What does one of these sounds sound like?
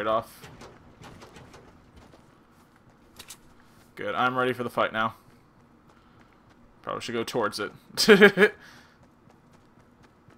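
Footsteps thud on grass and dirt as a figure runs.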